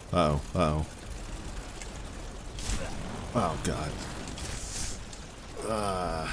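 A young man exclaims and talks with animation close to a microphone.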